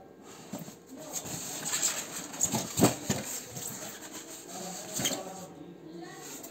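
Styrofoam squeaks and rubs as a box is handled and opened.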